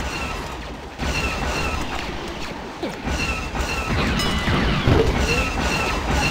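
A laser blaster fires in quick electronic zaps.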